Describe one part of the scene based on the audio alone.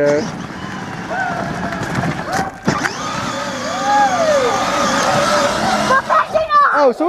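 An electric toy car's motor whines steadily.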